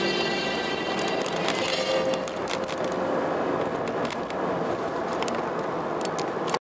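A car drives steadily along a road, its engine humming and tyres rolling.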